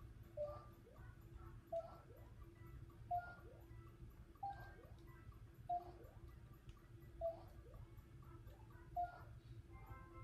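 Short bright chimes ring out from a video game at an even pace.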